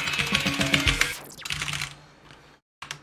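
Fast electronic music plays loudly, then stops.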